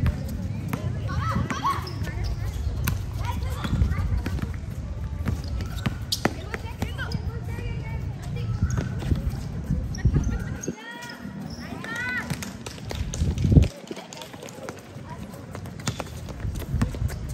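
Young women call out to each other during play.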